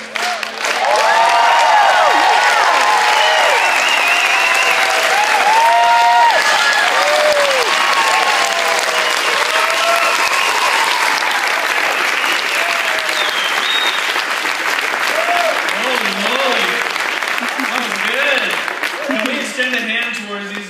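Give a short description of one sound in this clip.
A crowd of children and adults cheers and shouts loudly.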